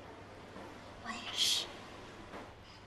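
A young woman speaks cheerfully, close by.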